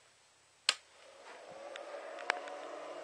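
A power inverter hums steadily.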